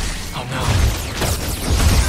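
Electricity crackles and snaps loudly.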